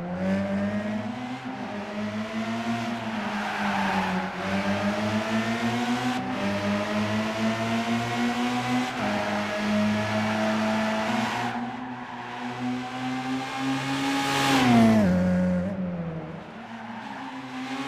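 A car engine revs high and shifts through gears as it races by.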